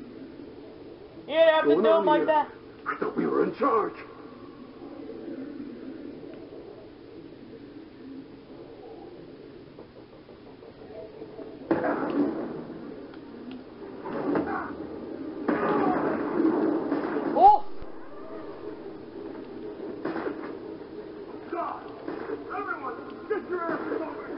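Video game laser blasts and explosions play through a television speaker.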